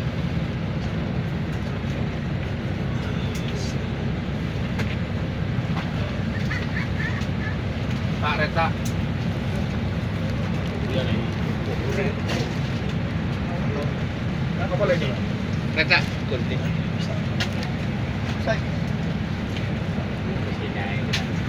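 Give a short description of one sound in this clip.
Several men talk nearby, in short bursts.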